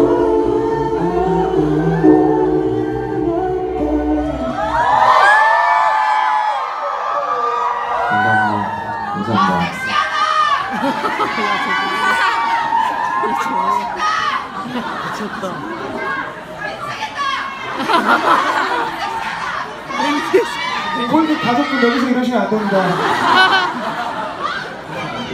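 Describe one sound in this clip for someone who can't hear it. A man sings into a microphone over loud amplified music in a live concert hall.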